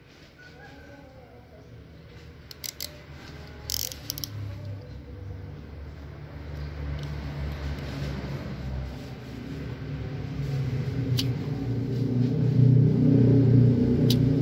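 A small knife scrapes and shaves a plant stem.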